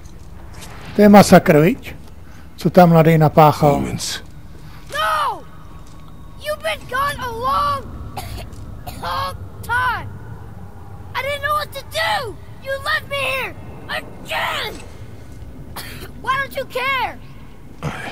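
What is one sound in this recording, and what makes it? A boy speaks upset and with animation, close by.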